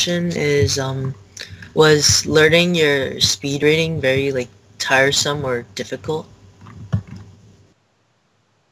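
A young boy speaks calmly and close up over an online call.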